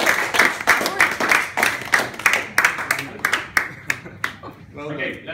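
People clap their hands quickly and loudly close by.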